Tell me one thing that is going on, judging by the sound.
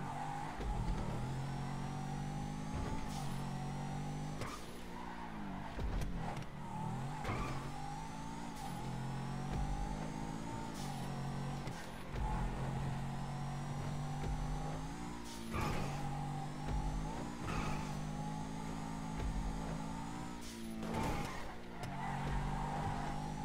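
A sports car engine revs hard through repeated gear changes.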